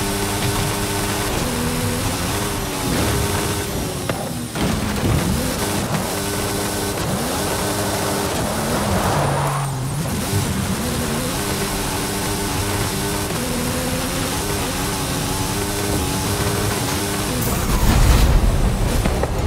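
A car engine roars and revs up and down through its gears.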